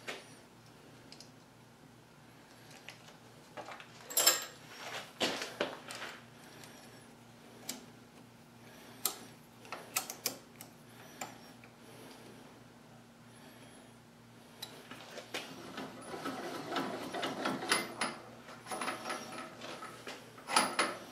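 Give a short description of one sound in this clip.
Metal tools clink and click against a lathe.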